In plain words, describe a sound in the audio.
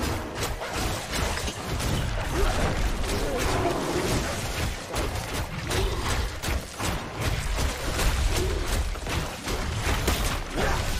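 Spell blasts and weapon strikes crash and crackle in quick bursts.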